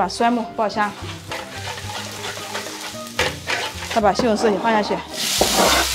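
A metal spatula scrapes and stirs in a wok.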